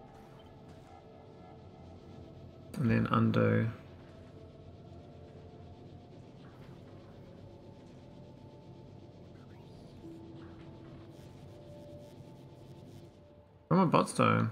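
Factory machines hum steadily.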